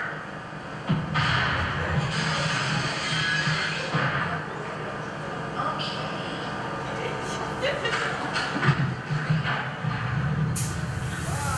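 A band plays live music.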